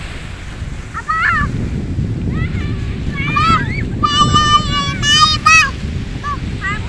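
A young child babbles and squeals close by.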